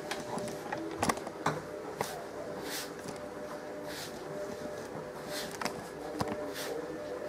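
A hand knocks against a metal bowl with short taps.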